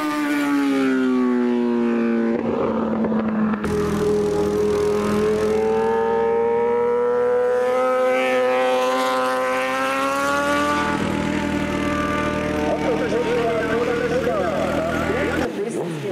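A racing motorcycle engine roars loudly, its pitch rising and falling as it shifts gears.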